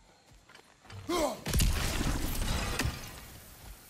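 An axe swings through the air with a whoosh.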